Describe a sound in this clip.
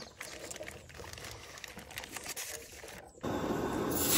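Plastic packaging crinkles in someone's hands.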